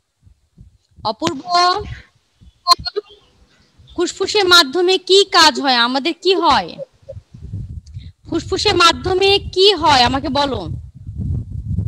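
A woman speaks with animation, close through a headset microphone.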